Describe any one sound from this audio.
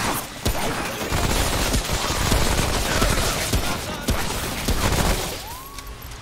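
Gunfire bursts rapidly and loudly.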